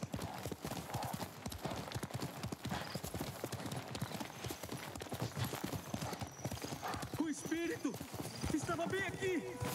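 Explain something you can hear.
A horse gallops with rapid, heavy hoofbeats.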